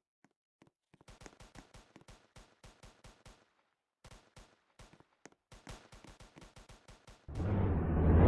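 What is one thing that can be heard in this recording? Footsteps tap quickly on pavement.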